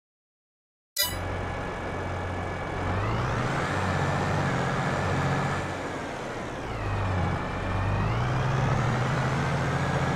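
A tractor engine rumbles steadily, rising and falling in pitch as it works.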